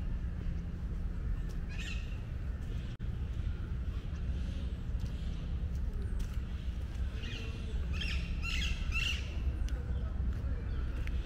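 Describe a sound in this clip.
Footsteps scuff along a stone path.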